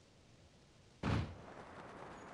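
A loud whoosh bursts as a game character launches into the air.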